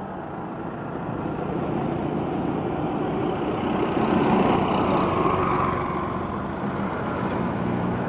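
Traffic rumbles steadily along the road outdoors.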